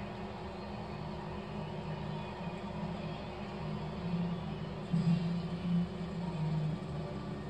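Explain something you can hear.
A marching band's brass plays through a television's speakers.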